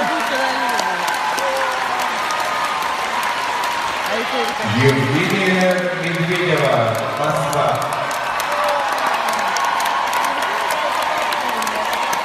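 A large crowd cheers and screams loudly in a big echoing arena.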